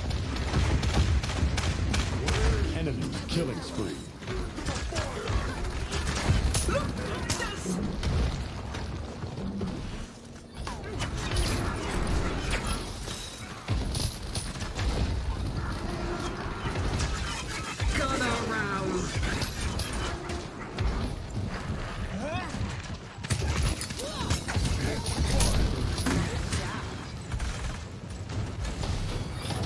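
Weapons fire in rapid bursts.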